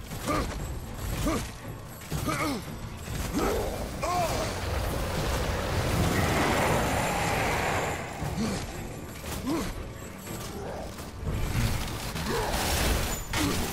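A giant creature roars and growls.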